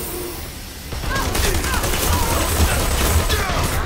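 A heavy machine gun fires a loud, rapid burst.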